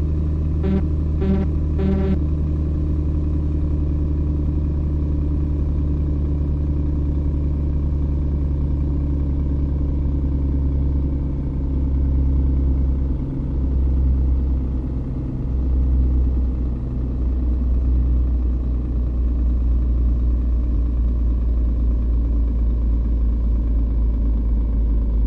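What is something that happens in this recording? A six-cylinder diesel truck engine drones at low speed, heard from inside the cab.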